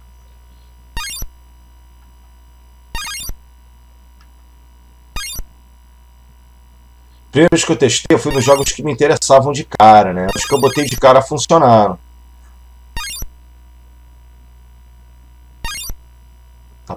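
Short electronic beeps sound as a menu cursor moves.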